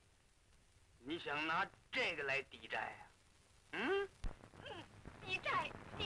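A middle-aged man speaks with animation nearby.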